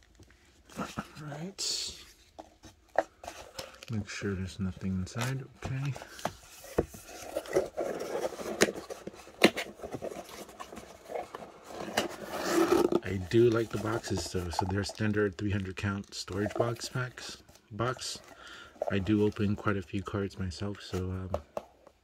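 A cardboard box scrapes and thumps as a hand handles it.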